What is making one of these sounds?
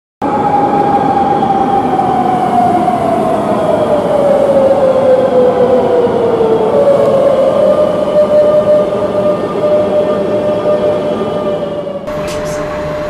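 An electric train hums and whines as it pulls into a station, its pitch slowly falling.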